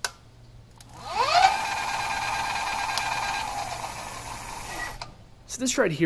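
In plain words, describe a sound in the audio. An electric motor whirs up to speed, hums steadily, then winds down.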